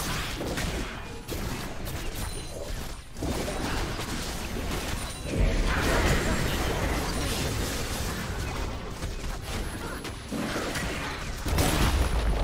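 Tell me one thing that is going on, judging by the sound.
Game sword strikes and impacts clash repeatedly.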